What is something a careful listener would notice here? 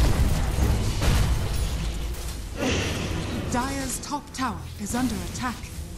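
Game sound effects of spells and weapon hits clash in a busy fight.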